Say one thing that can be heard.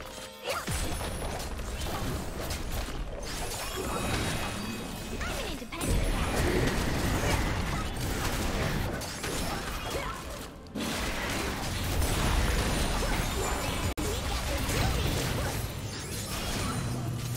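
Game spell effects whoosh and crackle in a fierce fight.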